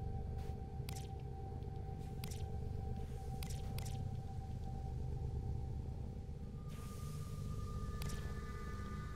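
Short electronic menu clicks sound as pages change.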